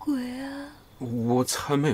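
A young man speaks quietly and nervously up close.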